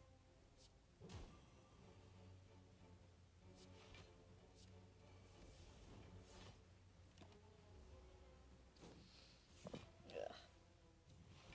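Magical whooshes and hits sound from a card game.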